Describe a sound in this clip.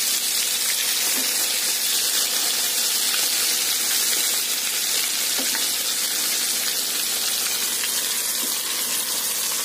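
A metal spoon scrapes against a pan.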